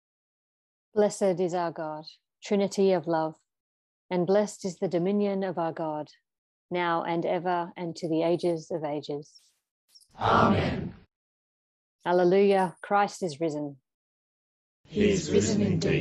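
An elderly man reads out calmly over an online call.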